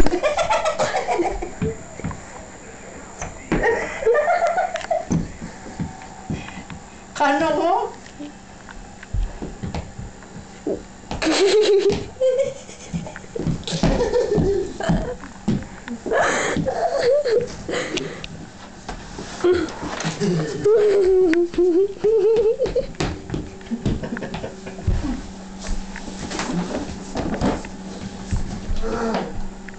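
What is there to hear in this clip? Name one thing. Shoes scuff and tap on a hard floor.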